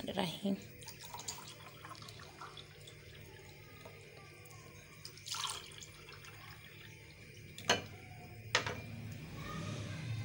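Liquid pours and splashes into a glass.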